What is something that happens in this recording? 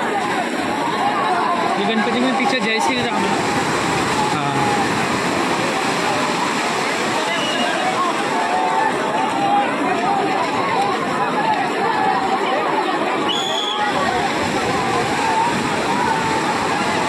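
Waves wash in over the sand.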